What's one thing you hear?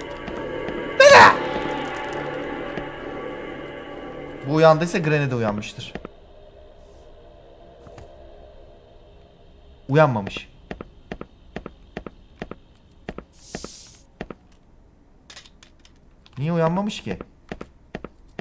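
A young man speaks loudly into a close microphone.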